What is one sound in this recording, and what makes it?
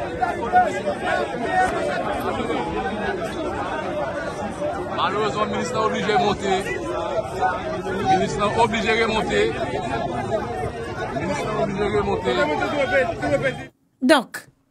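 A crowd talks and shouts outdoors in a noisy hubbub.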